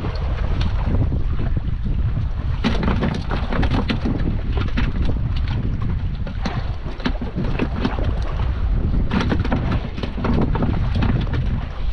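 Fishing line and hooks click and rattle in a man's hands.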